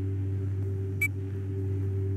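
A short click sounds once.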